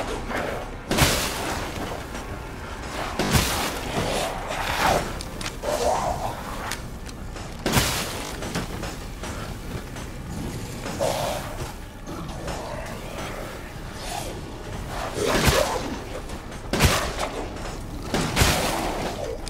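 Gunshots ring out one at a time, loud and close, with a short echo.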